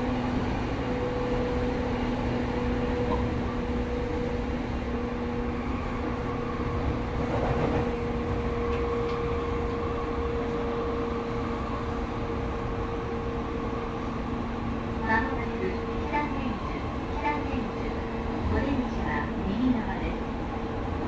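A subway train rumbles steadily along the tracks.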